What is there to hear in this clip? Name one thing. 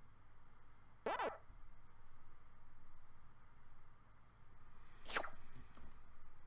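Short electronic menu blips sound.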